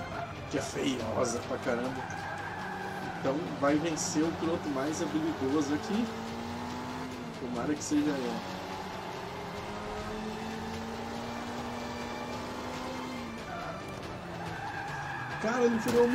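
A racing car engine revs and whines, rising in pitch as it speeds up.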